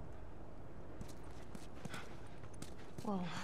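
Footsteps crunch on a grassy stone pavement.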